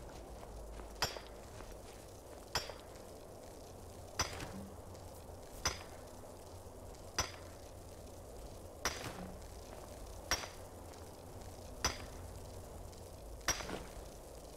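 A pickaxe strikes rock in sharp, regular blows.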